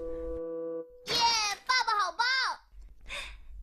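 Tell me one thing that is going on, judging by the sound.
A high, childlike cartoon voice exclaims excitedly.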